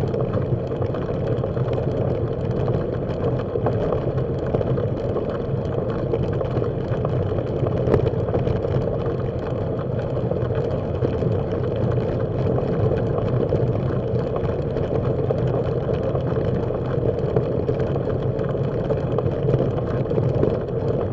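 Tyres crunch steadily over gravel.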